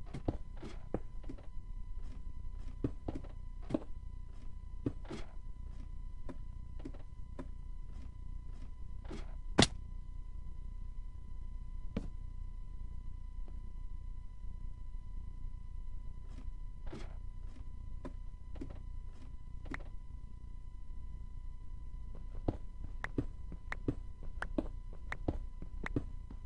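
Short, soft taps of footsteps on stone and a ladder come at an uneven pace.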